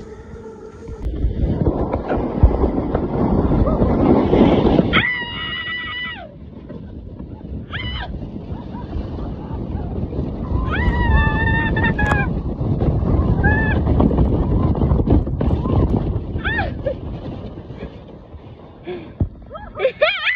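A snow tube scrapes and rumbles as it slides fast down packed snow.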